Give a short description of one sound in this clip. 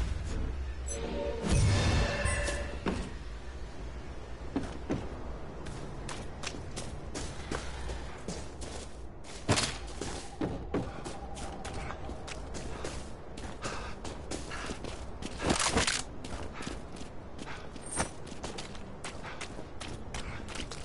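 Footsteps thud and crunch on wooden floors.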